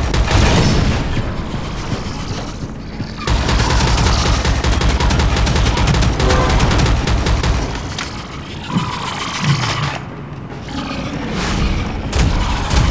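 Automatic gunfire rattles rapidly in quick bursts.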